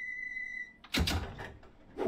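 Train doors slide shut with a thud.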